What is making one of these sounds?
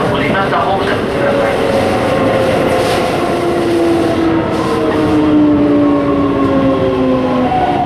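Train brakes squeal with falling tones as the train slows.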